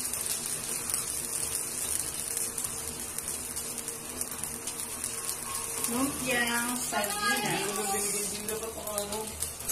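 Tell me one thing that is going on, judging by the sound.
Oil sizzles steadily in a hot pan.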